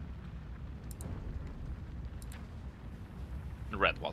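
A soft interface click sounds.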